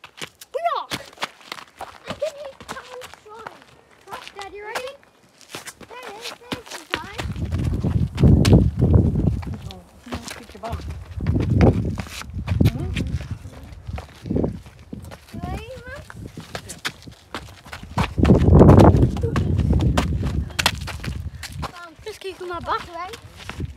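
Footsteps crunch on gravel and rock.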